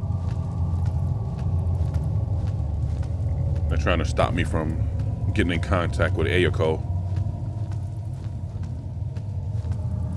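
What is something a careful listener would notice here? Footsteps tap slowly on a wooden floor.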